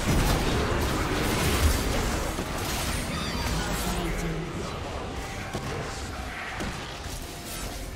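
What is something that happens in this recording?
Game spells whoosh, crackle and clash in a busy fight.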